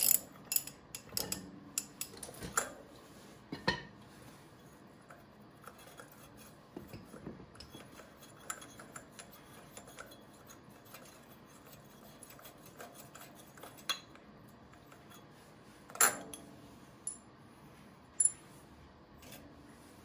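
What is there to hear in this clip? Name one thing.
Metal tools clink and scrape against an engine.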